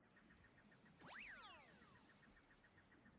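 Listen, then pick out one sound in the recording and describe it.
A bright chiming game sound sweeps up and then falls away.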